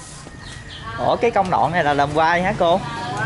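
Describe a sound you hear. A woman talks nearby in a lively voice.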